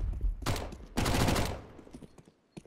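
A gun fires a burst of shots close by.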